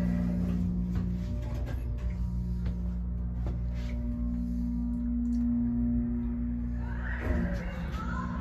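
An elevator motor hums steadily.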